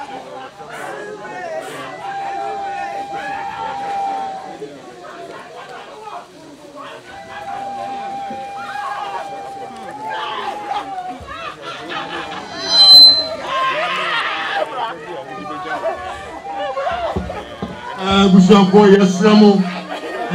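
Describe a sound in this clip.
A crowd of men and women murmurs and talks nearby.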